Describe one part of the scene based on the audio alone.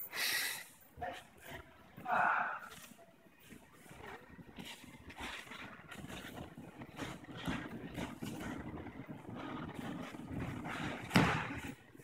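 Bare feet shuffle and thud on a padded mat.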